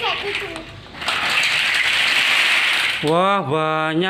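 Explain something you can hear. Plastic toy blocks pour out and clatter onto a hard floor.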